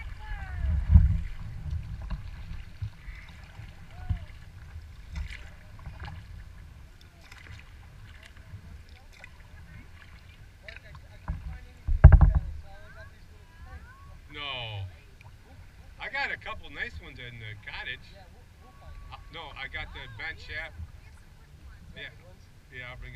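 Paddles splash and dip in calm water.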